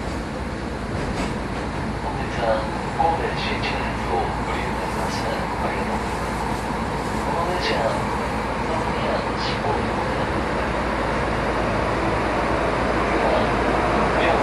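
A train rumbles along the tracks, slowly growing louder as it approaches.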